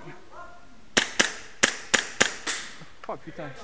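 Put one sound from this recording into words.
Several gunshots crack in quick succession, echoing off hard walls.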